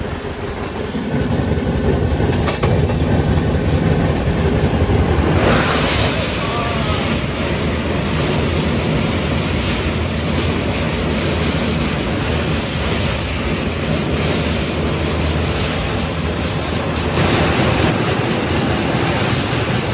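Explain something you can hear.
Wind rushes past an open train door.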